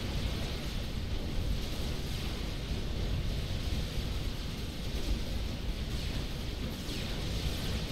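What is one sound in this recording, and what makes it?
Explosions and gunfire rumble and crackle without pause in a large battle.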